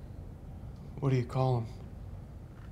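A man speaks briefly in a strained voice, close by.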